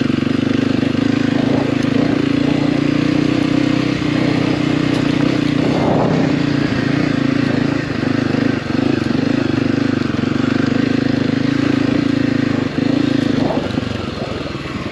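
A motorcycle engine drones steadily up close, rising and falling slightly with the throttle.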